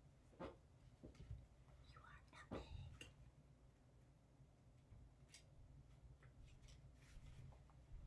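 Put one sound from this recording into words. Playing cards shuffle and flick softly.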